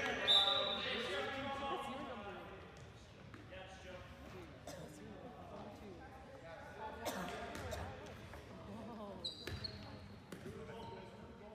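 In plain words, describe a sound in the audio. Young men call out to each other in an echoing gym.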